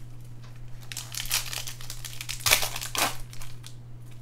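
A foil wrapper crinkles and tears as hands open a pack.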